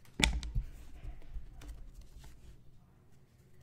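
Stacks of trading cards tap and shuffle against a table.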